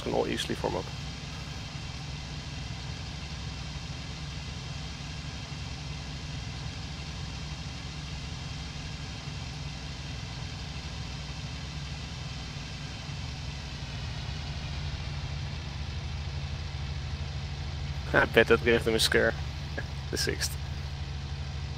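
An aircraft engine drones steadily, rising slightly in pitch.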